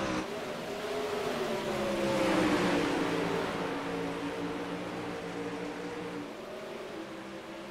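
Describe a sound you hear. Racing car engines roar loudly as the cars speed past.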